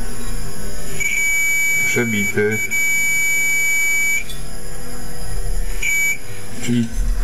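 A multimeter beeps with a steady high tone.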